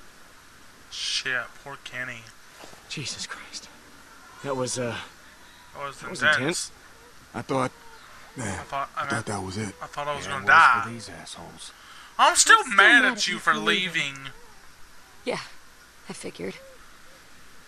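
A man talks animatedly into a microphone, close by.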